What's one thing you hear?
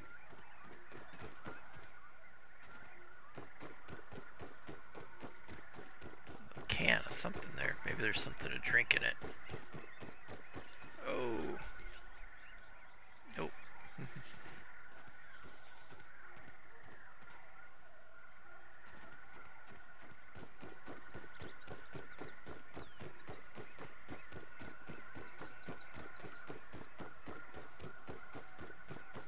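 Footsteps patter steadily through rustling grass.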